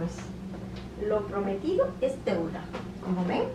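A woman speaks to the listener with animation.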